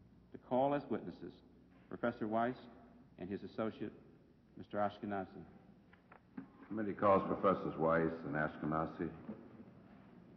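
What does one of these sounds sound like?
A middle-aged man speaks calmly into a microphone, in a large room.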